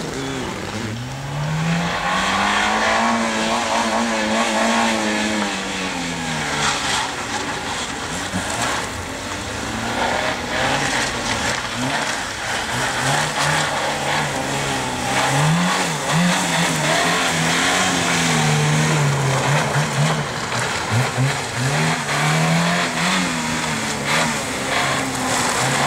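A car engine revs hard, rising and falling as the car accelerates and brakes.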